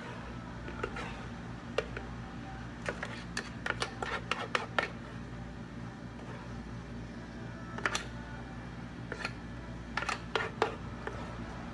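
A spoon scrapes and taps against plastic cups and a blender jug.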